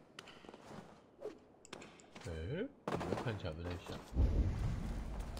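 A heavy thud sounds as someone drops and lands on the ground.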